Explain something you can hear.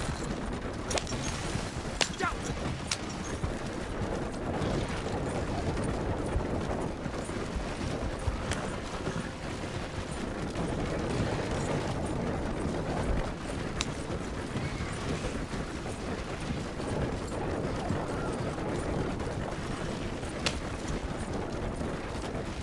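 Horse hooves clop steadily.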